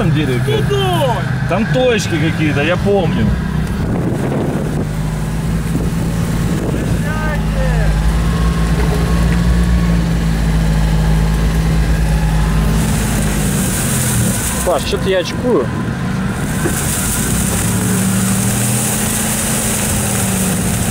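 A car engine hums and rumbles while driving.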